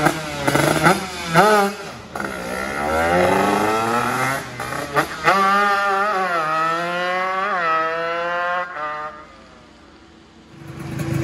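A motorcycle engine screams through its gears as the bike speeds away.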